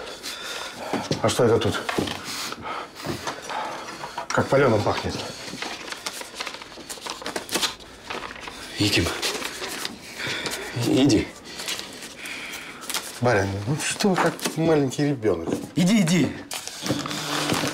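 A middle-aged man speaks nearby in a low, questioning voice.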